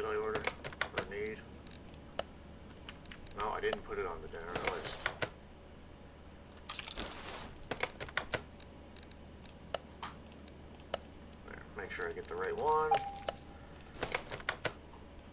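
Short interface clicks tick as menu items are picked.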